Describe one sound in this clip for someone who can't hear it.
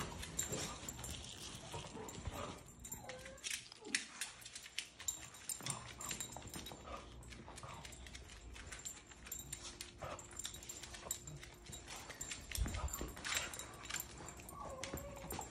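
A dog's claws click on a wooden floor as it walks.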